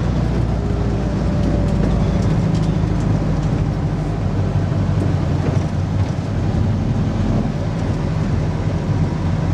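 An old vehicle engine rumbles loudly and steadily while driving.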